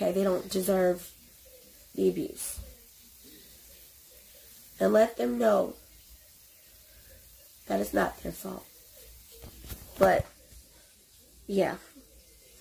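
A young woman speaks close by in short, expressive bursts with pauses.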